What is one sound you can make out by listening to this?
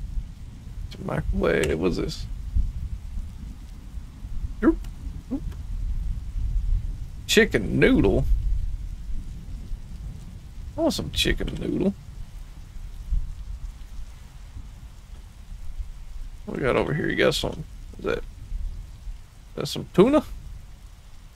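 A man speaks casually into a close microphone, in short bursts with pauses.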